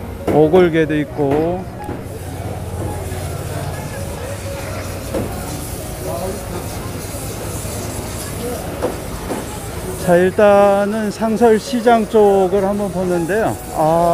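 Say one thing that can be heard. A busy outdoor crowd murmurs and bustles.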